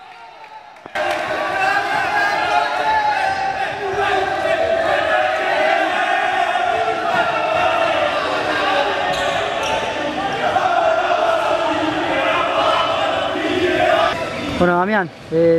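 A group of young men shout and cheer together.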